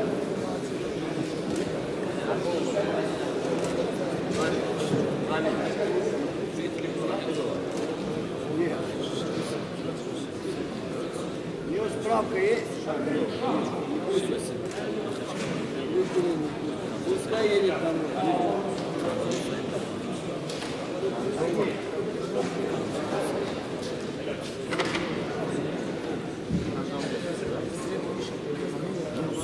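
Many voices murmur in a large echoing hall.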